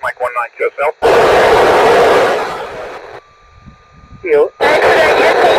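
A handheld radio hisses with loud static in bursts.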